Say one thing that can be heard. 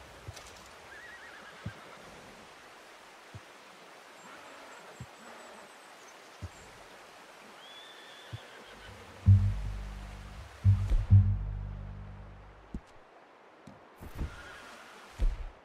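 Wind blows softly across open snow.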